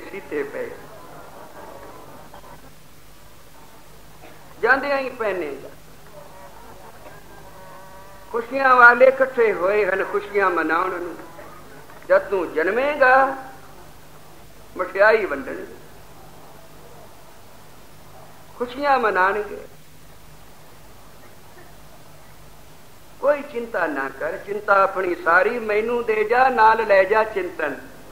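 An elderly man speaks through a microphone in short, slow phrases with pauses.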